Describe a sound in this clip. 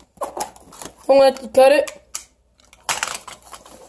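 Cardboard flaps rustle as a box is opened.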